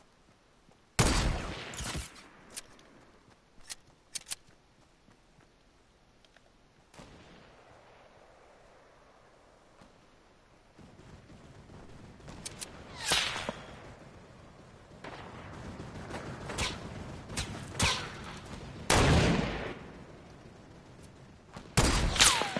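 Loud rifle shots crack out with a short echo.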